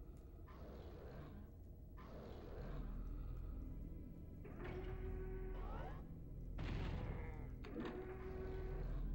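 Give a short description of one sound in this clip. A shotgun blasts repeatedly with a booming echo.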